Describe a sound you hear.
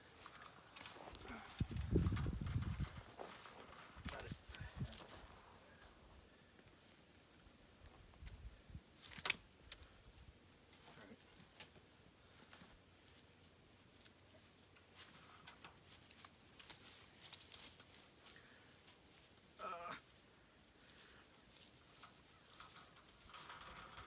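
Wire fencing clinks and rattles as it is twisted by hand.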